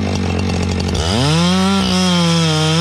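A chainsaw revs up sharply into a loud, high whine.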